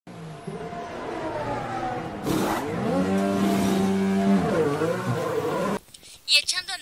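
A racing car engine roars and changes pitch.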